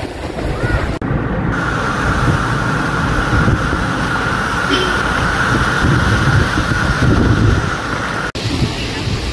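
A truck drives through deep floodwater, splashing loudly.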